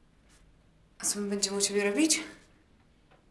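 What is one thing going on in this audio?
A young woman speaks up clearly, close by.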